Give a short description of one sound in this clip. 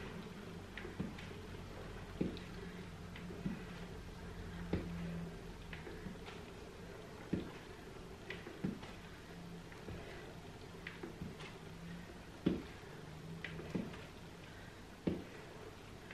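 Feet thump softly on a floor mat.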